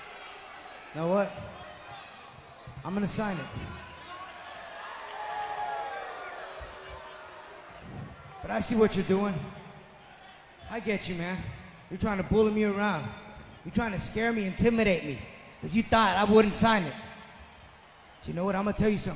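A man speaks calmly into a microphone, heard through loudspeakers in a large arena.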